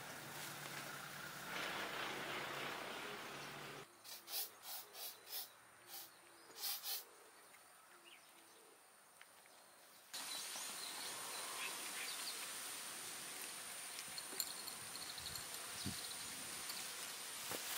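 Cats chew and lap food from bowls.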